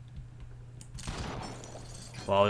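A gun fires with a muffled blast.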